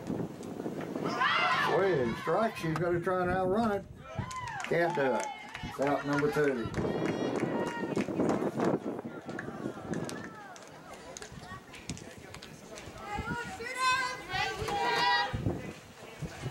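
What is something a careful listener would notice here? Young girls on a softball team shout and cheer outdoors.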